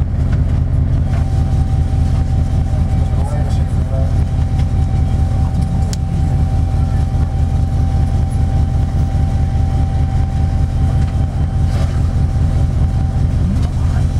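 An engine rumbles steadily from inside a vehicle.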